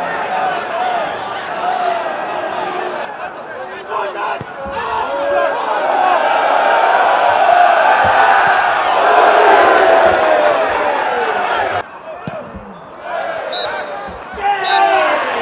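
A crowd cheers and roars loudly, swelling and then dropping off suddenly.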